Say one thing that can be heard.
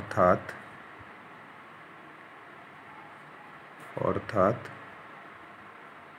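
A pen scratches softly on paper.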